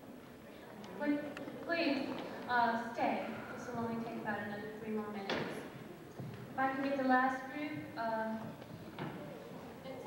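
A woman speaks through a loudspeaker in a large echoing hall.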